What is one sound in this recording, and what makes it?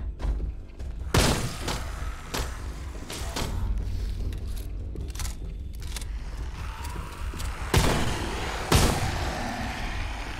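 Loud thuds and blows strike in bursts.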